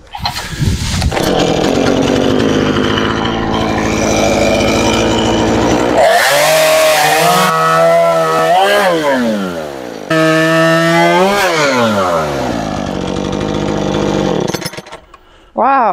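A chainsaw engine roars and revs up and down close by.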